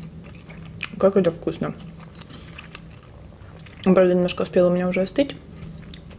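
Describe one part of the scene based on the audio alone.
Crisp bread crackles and tears between fingers.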